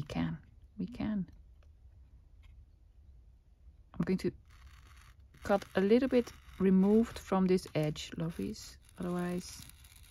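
A craft knife scratches as it cuts through paper.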